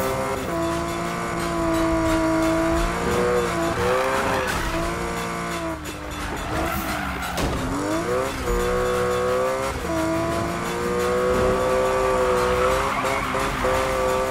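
A racing car engine roars loudly, revving up and down as gears shift.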